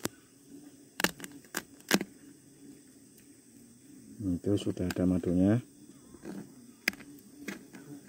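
Fingers tap and scrape against dry hive material.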